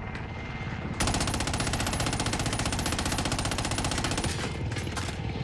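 A rapid burst of automatic gunfire rattles loudly.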